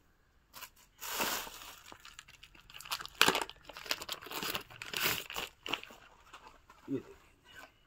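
Plastic wrapping crinkles as clothes are handled.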